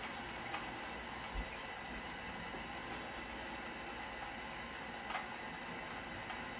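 Water rushes steadily through a meter with a low hiss.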